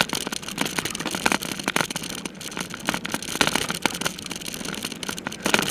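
Tyres roll and rattle quickly over a bumpy dirt trail.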